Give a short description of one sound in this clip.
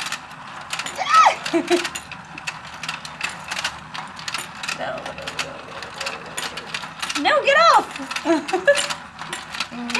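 Young women laugh and squeal with excitement.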